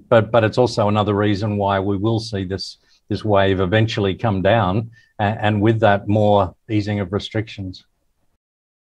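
A middle-aged man speaks calmly through a microphone over an online call.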